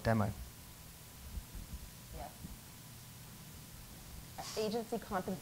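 A woman speaks calmly through a microphone, in short bursts with pauses.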